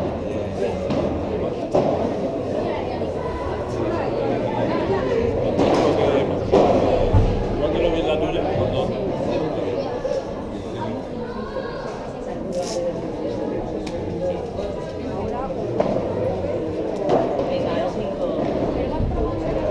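A group of people chatter nearby in a large echoing hall.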